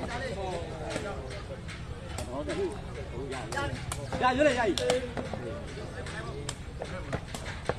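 A crowd of men chatters and shouts outdoors.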